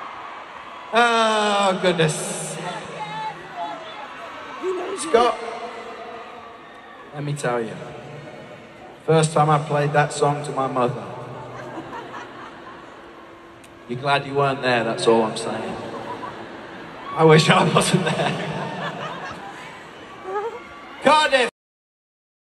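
A man speaks with animation into a microphone, heard through loudspeakers echoing in a large arena.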